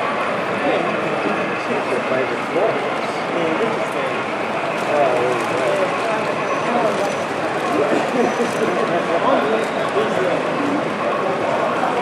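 A model train rumbles steadily along its track.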